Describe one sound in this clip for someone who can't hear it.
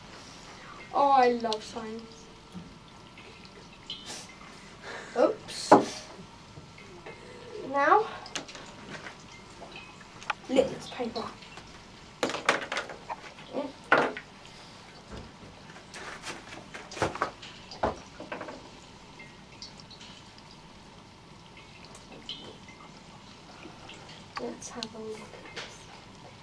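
A boy talks nearby.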